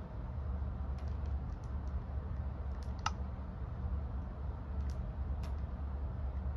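A handheld game console makes short clicking menu sounds.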